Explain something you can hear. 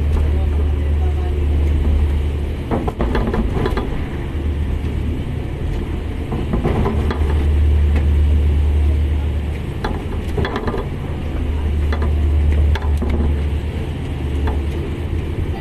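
Waves crash and splash against the side of a ship.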